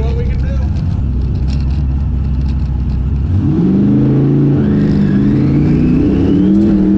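A race car engine idles with a low rumble, then revs up loudly and rises in pitch.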